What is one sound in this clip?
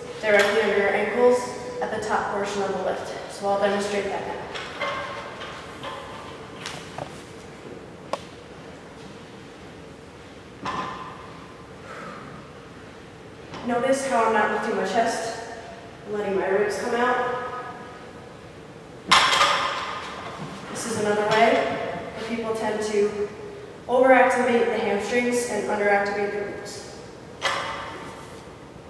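A woman talks with animation, close to a microphone, in a slightly echoing room.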